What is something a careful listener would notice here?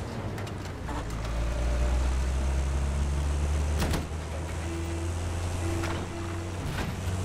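A heavy vehicle engine rumbles low and steady.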